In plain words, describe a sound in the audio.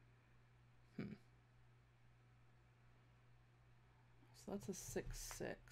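A young woman speaks briefly and casually into a microphone, close by.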